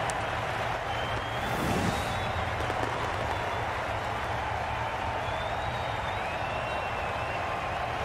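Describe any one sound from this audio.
A crowd roars steadily in a large stadium.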